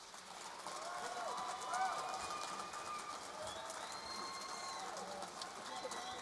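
An audience cheers and whistles.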